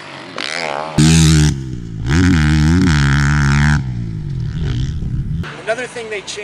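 A motorcycle engine revs loudly as a dirt bike jumps.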